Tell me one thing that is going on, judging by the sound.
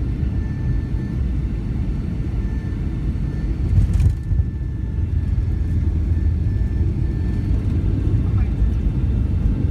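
A jet plane's engines roar steadily from inside the cabin.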